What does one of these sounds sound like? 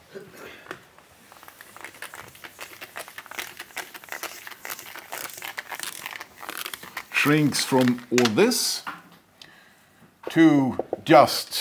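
A whiteboard eraser rubs and squeaks across a board.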